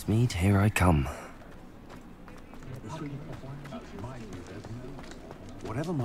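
Footsteps fall on cobblestones.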